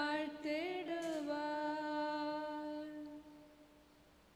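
A man chants a long sung note through a microphone, echoing in a large hall.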